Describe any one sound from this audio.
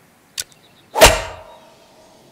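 A golf club strikes a ball with a sharp whack.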